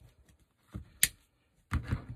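Wire cutters snip a wire with a sharp click.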